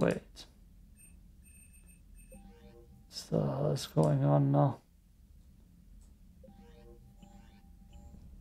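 Soft electronic menu tones beep and chime.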